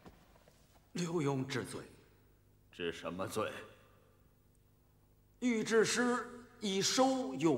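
An elderly man answers in a low, humble voice.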